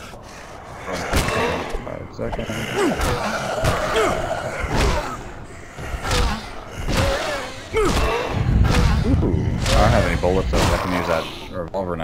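A wooden club thuds against a body.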